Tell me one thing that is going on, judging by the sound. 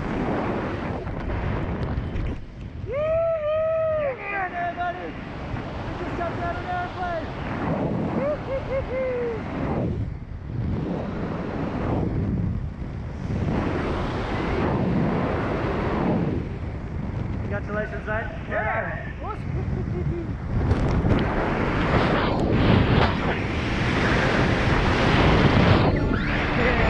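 Wind rushes and buffets loudly past a microphone.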